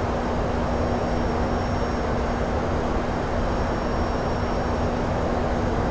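Aircraft engines drone steadily with a low hum.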